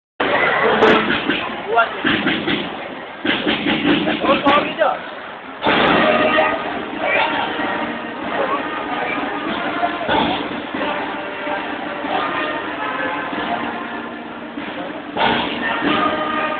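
A marching band plays drums and brass in a large echoing hall.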